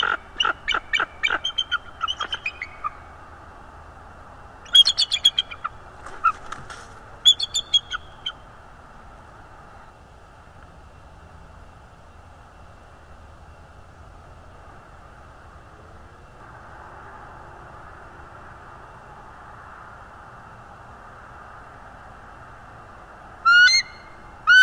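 An eagle gives high, chattering calls in bursts.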